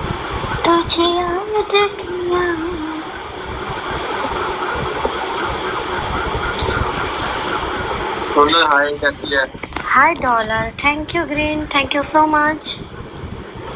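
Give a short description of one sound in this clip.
A young man sings close by.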